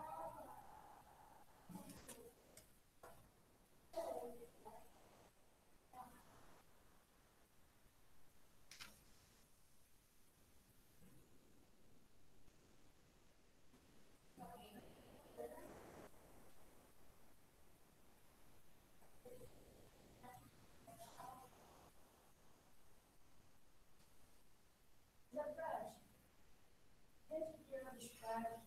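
A person speaks in short bursts, heard through an online call.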